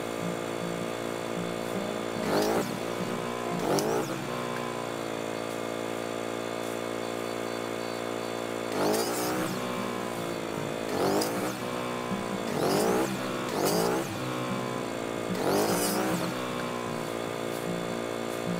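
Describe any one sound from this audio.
A small chainsaw engine idles steadily nearby.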